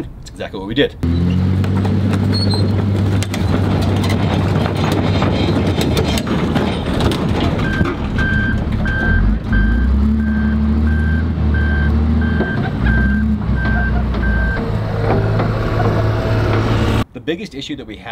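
A heavy diesel engine roars and rumbles steadily.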